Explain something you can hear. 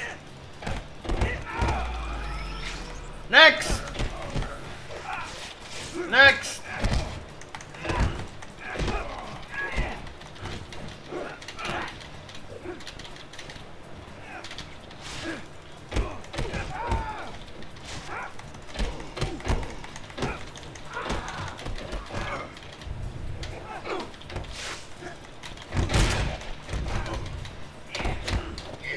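Punches and blows thud in quick bursts from a video game.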